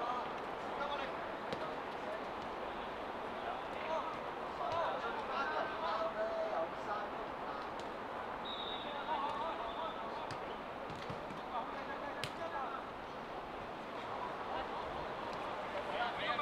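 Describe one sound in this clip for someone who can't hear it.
A football thuds as a player kicks it.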